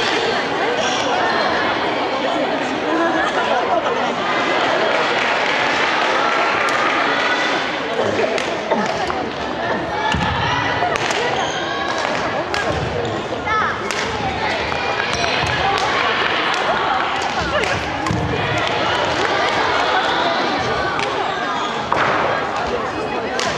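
Many young women chatter and call out in a large echoing hall.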